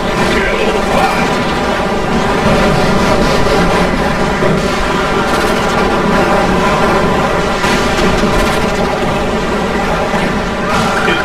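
Explosions boom and crackle in a battle.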